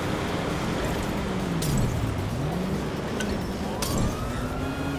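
A glass bottle smashes and flames whoosh up.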